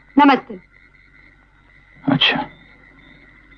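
A man speaks in a low, calm voice, close by.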